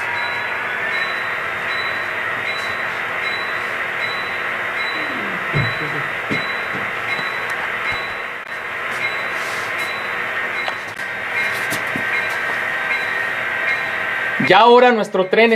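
A model diesel locomotive hums and whines steadily as it rolls slowly along the track.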